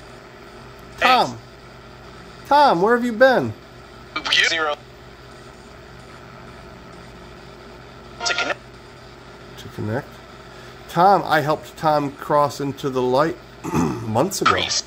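A ghost-box app on a phone plays short, choppy bursts of swept radio through a small speaker.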